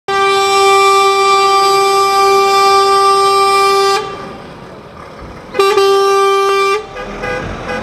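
A truck's horn blares long and loud, then blares again.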